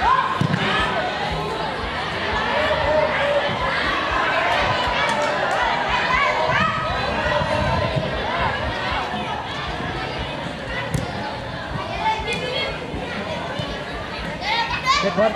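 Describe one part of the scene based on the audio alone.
A crowd of children shouts and cheers outdoors.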